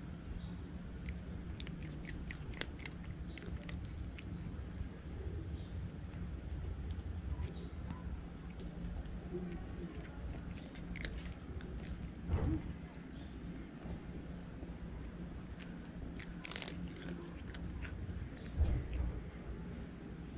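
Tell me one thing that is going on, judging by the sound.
A cat crunches dry food with small crisp clicks up close.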